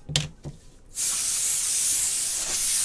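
A foil pack tears open with a loud crinkling.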